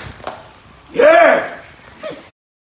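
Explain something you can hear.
A young man exclaims loudly nearby.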